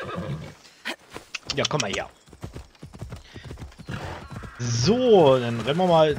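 A horse's hooves gallop over the ground.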